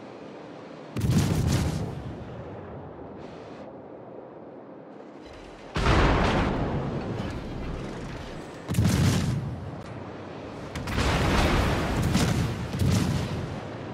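Heavy guns fire in loud, deep booms that rumble away.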